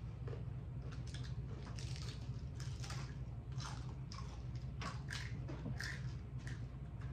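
Hard taco shells crunch between teeth close to the microphone.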